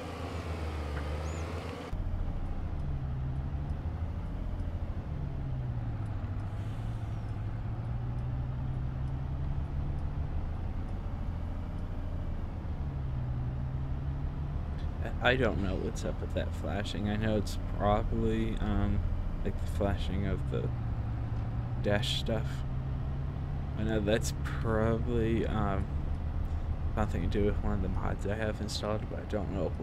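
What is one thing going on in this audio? A truck's diesel engine rumbles steadily and changes pitch as it shifts gears.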